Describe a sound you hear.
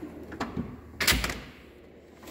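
A metal drawer slides shut with a thud.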